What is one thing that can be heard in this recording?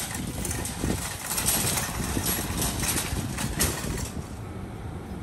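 Wind blows hard across an open outdoor space.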